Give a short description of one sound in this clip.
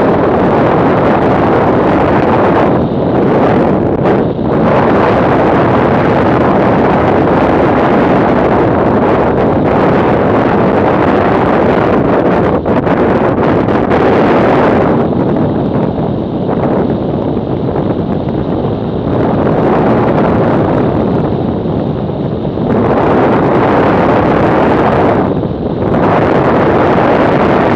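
Wind roars loudly past a motorcycle rider at speed.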